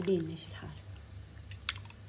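Liquid pours and splashes into a glass with ice.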